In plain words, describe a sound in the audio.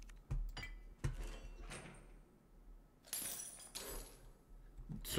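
A heavy chain rattles and clatters.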